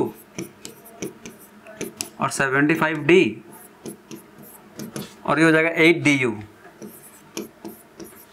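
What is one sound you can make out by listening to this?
A marker squeaks and taps on a board.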